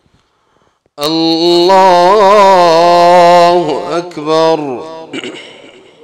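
A man chants a long, drawn-out call loudly through a microphone, echoing in a large hall.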